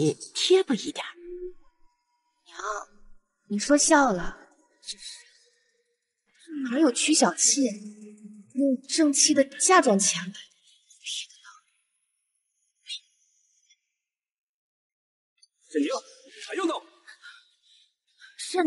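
A young woman speaks with a teasing, animated tone.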